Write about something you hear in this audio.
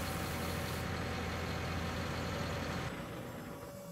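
A tracked digger's engine rumbles steadily.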